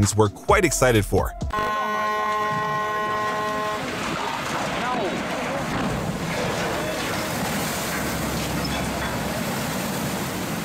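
Water surges and splashes loudly as a large ship slides sideways into a canal.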